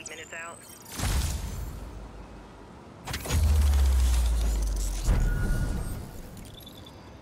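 A deep booming whoosh surges as a tower powers up.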